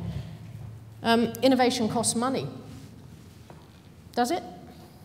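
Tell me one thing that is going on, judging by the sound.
A woman speaks to an audience through a microphone.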